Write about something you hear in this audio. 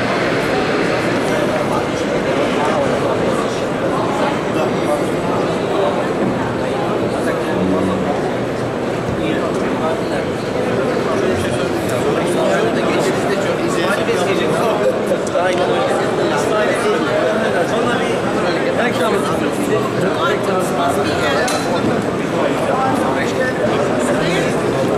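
A crowd of men and women chatter all around in a large, busy hall.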